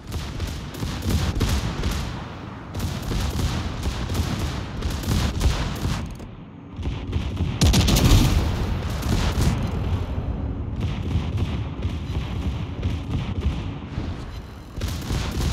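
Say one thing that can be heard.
Large naval guns fire booming salvos.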